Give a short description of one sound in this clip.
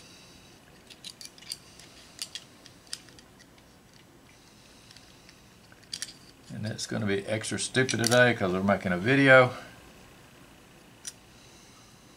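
Small metal parts click and tap together.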